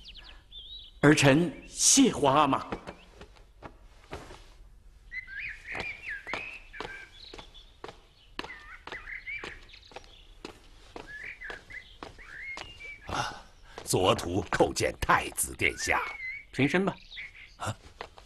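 A young man speaks respectfully.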